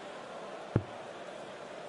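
A dart thuds into a dartboard.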